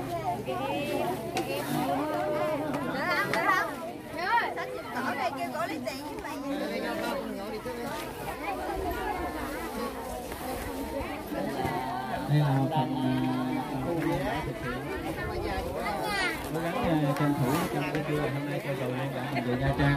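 Several women talk and chatter nearby.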